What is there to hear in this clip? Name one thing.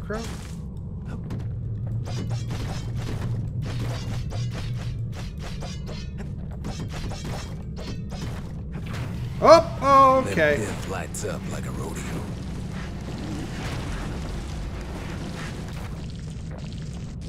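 Game sound effects clatter and thud during a fight.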